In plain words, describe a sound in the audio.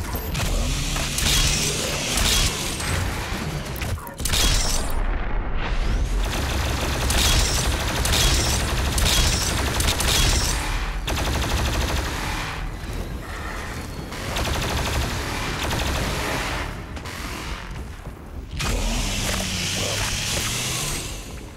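Guns fire rapidly in short bursts.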